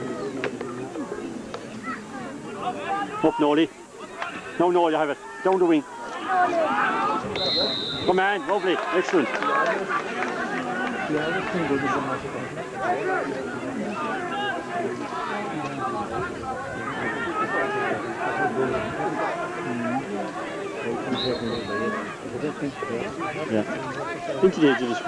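A large crowd of spectators chatters and shouts outdoors.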